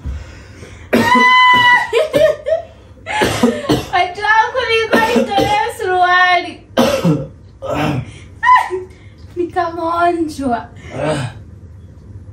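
A young woman talks with animation close by.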